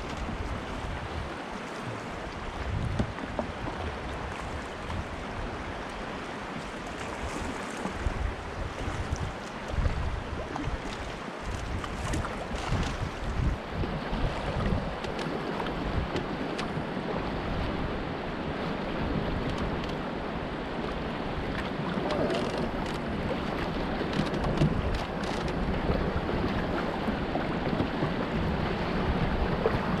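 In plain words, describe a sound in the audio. River water rushes and gurgles steadily around a canoe.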